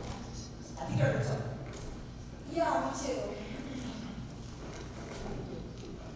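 A second teenage boy speaks animatedly in an echoing hall.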